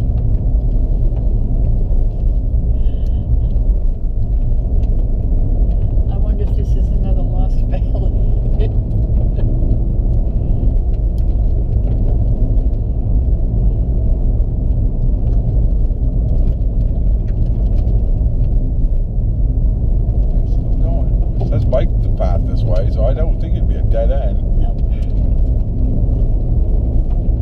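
Tyres rumble low on a wet road.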